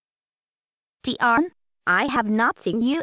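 A girl speaks with animation in a synthetic, computer-made voice.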